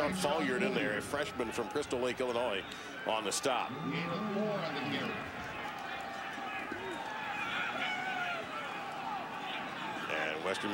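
A large crowd murmurs and cheers in an open stadium.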